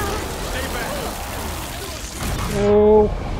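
A loud explosion blasts debris apart with a roaring rumble.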